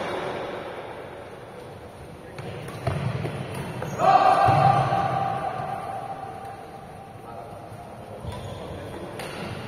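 Shoes squeak and thud on a court floor.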